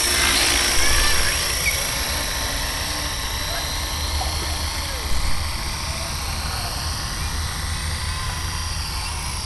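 A model helicopter's engine whines steadily with a high buzzing hum.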